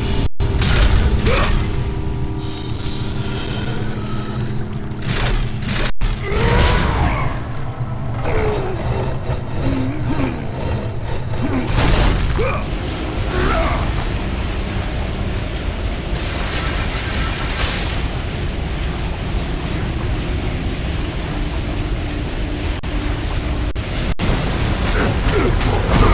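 Chained blades whoosh through the air in swift swings.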